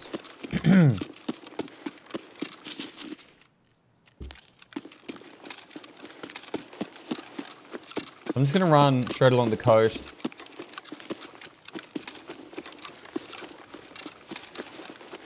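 Footsteps tread quickly over grass and dirt.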